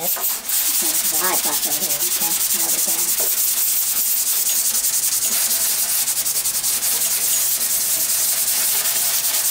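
Hands scrub a wet surface with a sanding pad in quick, rasping strokes.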